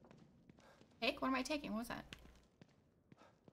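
A young woman speaks into a close microphone.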